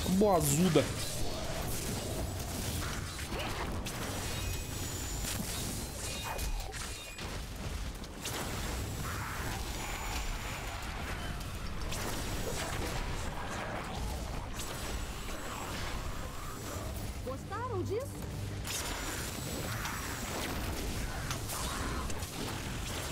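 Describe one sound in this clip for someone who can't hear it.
Game spells blast and crackle with fiery bursts.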